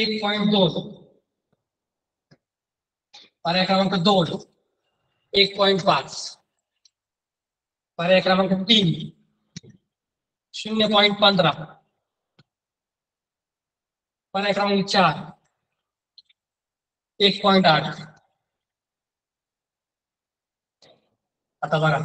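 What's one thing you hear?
A young man speaks in short, clear phrases, pausing between them.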